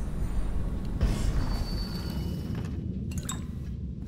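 A wooden chest lid creaks open.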